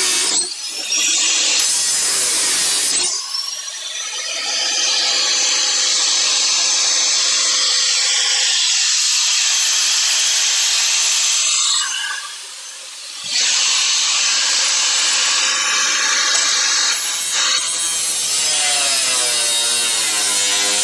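An angle grinder whines loudly as it grinds against sheet metal.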